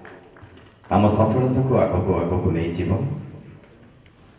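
A man announces through a loudspeaker in an echoing hall.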